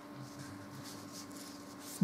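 A hand brushes softly against paper.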